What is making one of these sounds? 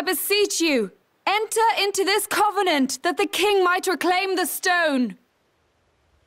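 A young woman speaks solemnly and clearly, close by.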